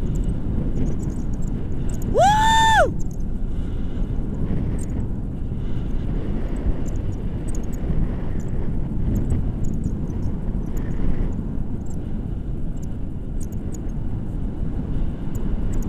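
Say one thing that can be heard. Wind rushes loudly past a microphone outdoors.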